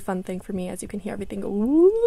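A switch clicks on a tape machine.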